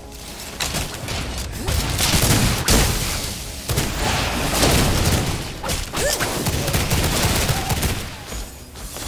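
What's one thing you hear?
Magic blasts crackle and boom in quick bursts.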